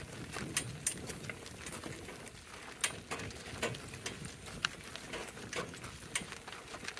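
Hooves clop steadily on a gravel road.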